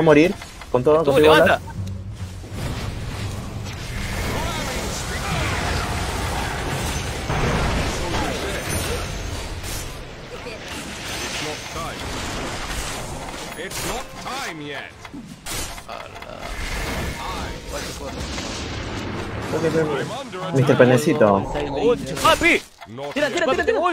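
A young man talks with animation into a nearby microphone.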